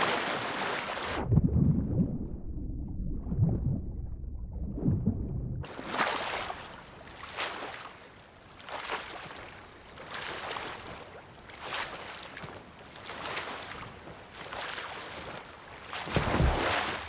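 Water splashes rhythmically as someone swims.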